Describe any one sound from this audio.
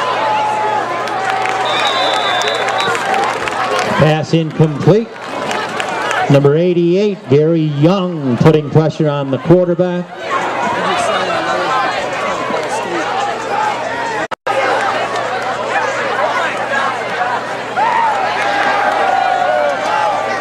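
A crowd cheers and chatters outdoors.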